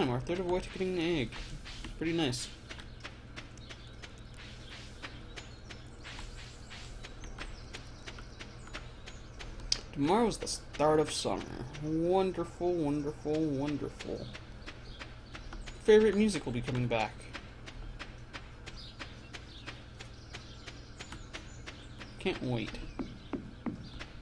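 Footsteps patter quickly on a dirt path.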